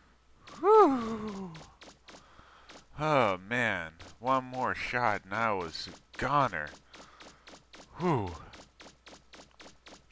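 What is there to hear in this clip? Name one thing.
Footsteps patter quickly on dirt.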